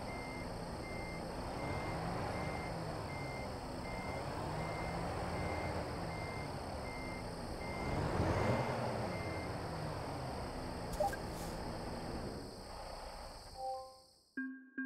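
A truck engine rumbles and hums steadily.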